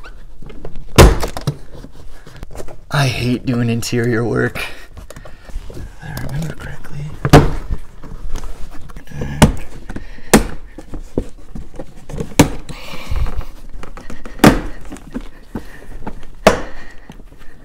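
Plastic trim clicks and knocks as a car seat panel is worked loose.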